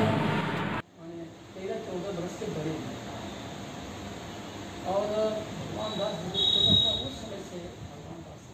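A man speaks calmly in a room, a little distance away.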